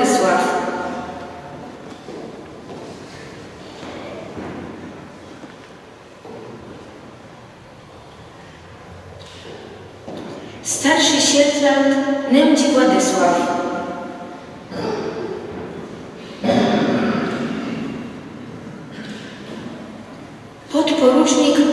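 A young woman reads out calmly into a microphone in a large echoing hall.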